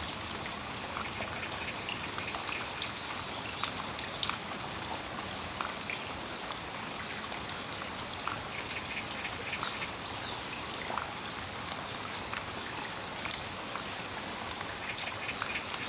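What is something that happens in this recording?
Steady rain falls and patters outdoors.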